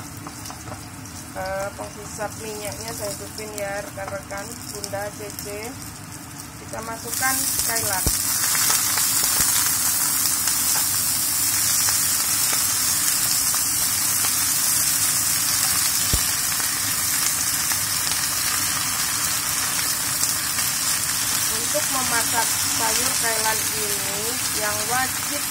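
Food sizzles loudly in a hot frying pan.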